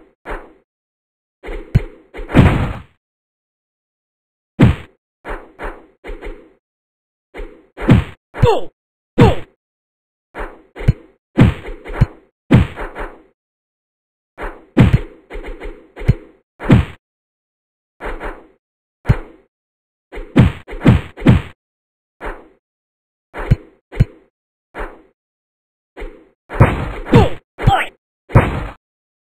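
Punches and kicks land with sharp thuds in a fighting game.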